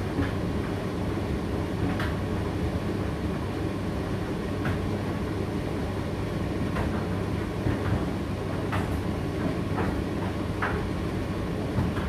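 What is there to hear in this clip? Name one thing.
A condenser tumble dryer runs with a low, steady rumbling hum.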